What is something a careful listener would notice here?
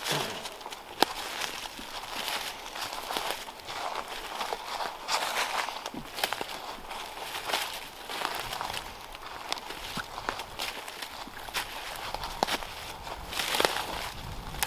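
Twigs snap underfoot.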